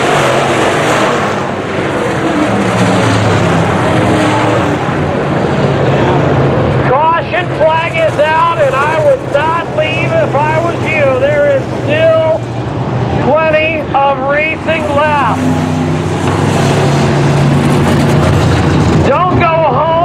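Race car engines roar loudly as cars speed past on a dirt track.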